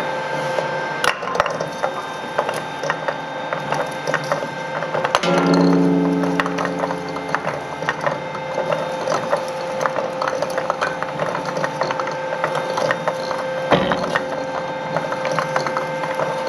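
A shredder's rollers grind and hum steadily.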